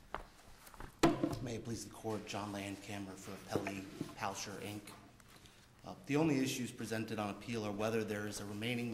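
A younger man speaks steadily into a microphone.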